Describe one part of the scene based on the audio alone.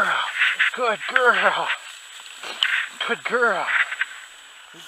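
A dog whines up close.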